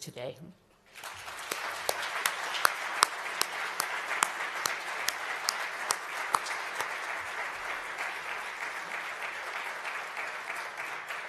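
An audience applauds in a large room.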